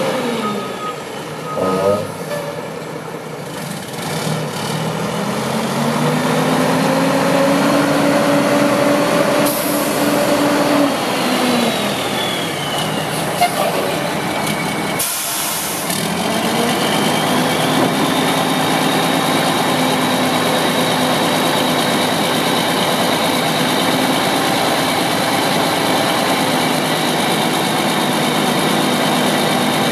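A large diesel truck engine rumbles and revs up and down close by.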